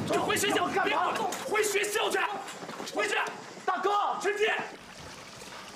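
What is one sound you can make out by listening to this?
A young man shouts with agitation close by.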